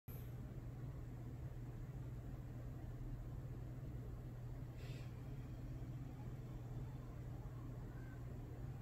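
A dog breathes softly in its sleep.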